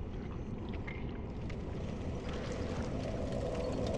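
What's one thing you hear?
Armoured footsteps clank softly on stone.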